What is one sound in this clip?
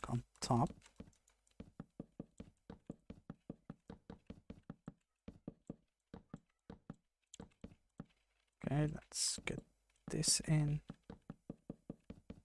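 Wooden blocks thud softly as they are placed, one after another in a quick, steady rhythm.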